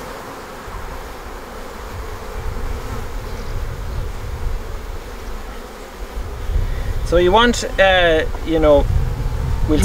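A metal hive tool scrapes and pries at wooden hive frames.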